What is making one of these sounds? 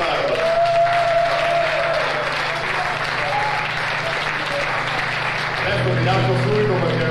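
A rock band plays loudly.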